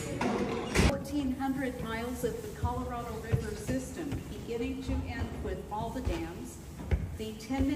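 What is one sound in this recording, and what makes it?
A middle-aged woman speaks with animation close by, explaining.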